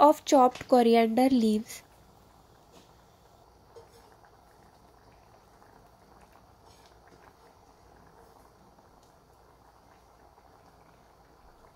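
A pot of soup simmers and bubbles softly.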